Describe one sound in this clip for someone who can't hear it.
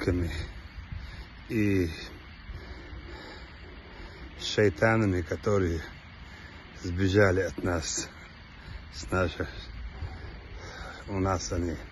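A man speaks calmly in short phrases close to the microphone.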